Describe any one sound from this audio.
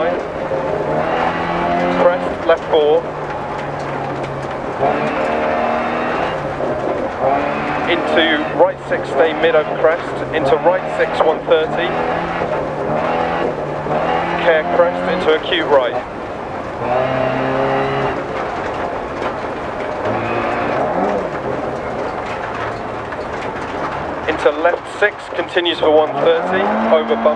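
A small rally car engine revs hard, rising and falling through the gears.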